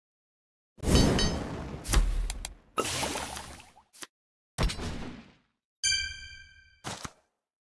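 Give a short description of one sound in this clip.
Game interface sounds whoosh and chime as cards are drawn and played.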